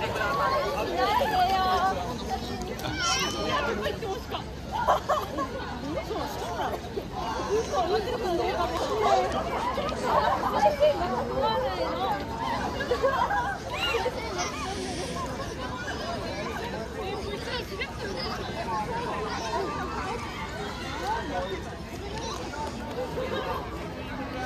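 A crowd of young students chatters outdoors.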